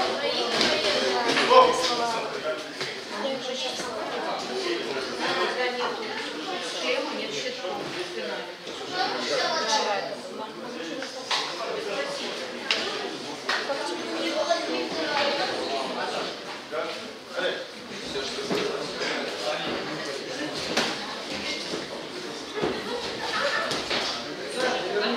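Men and women talk at a distance in a large echoing hall.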